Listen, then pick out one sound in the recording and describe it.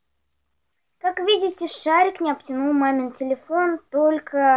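A young child talks and sings close by.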